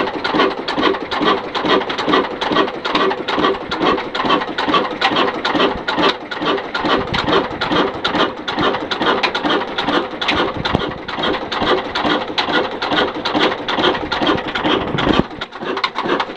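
A single-cylinder stationary diesel engine chugs at a slow, even beat.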